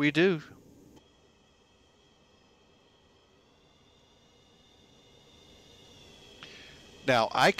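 A jet engine whines steadily.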